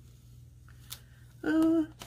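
A sticker peels off its backing paper with a soft crinkle.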